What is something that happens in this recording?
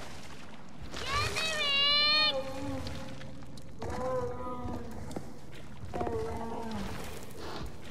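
A large creature lets out long, wailing cries.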